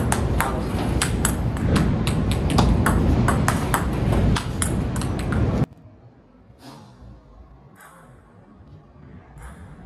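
A ping-pong ball clicks quickly back and forth off paddles and a table.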